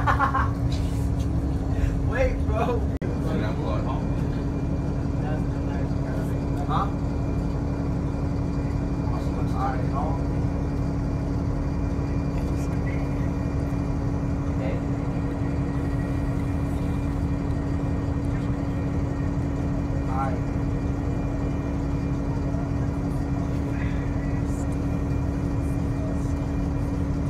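A light rail train hums and rumbles steadily as it rolls slowly past in a large echoing concrete space.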